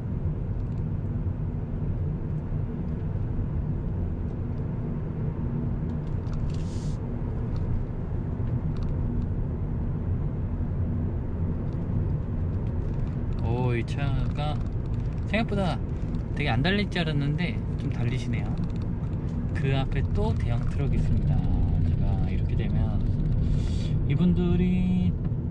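A car's engine hums and its tyres rumble steadily on the road, heard from inside.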